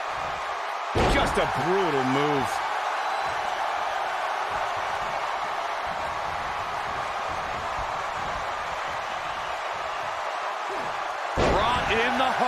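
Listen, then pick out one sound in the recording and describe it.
A body thuds heavily onto a wrestling ring mat.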